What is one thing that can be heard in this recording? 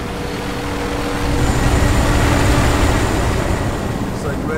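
A helicopter roars overhead.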